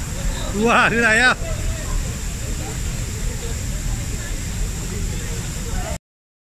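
A waterfall rushes steadily in the background.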